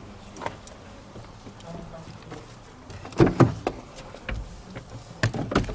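Things rustle and knock as a person searches a car interior.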